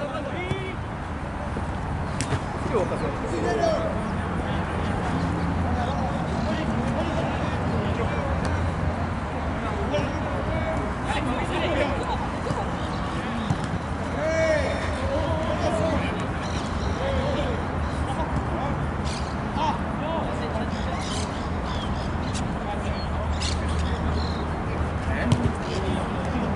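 Young men shout to each other in the distance.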